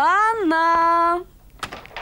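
A door handle clicks and rattles.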